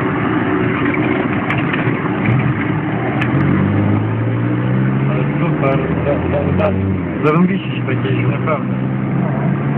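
A vehicle rattles and clatters over bumps.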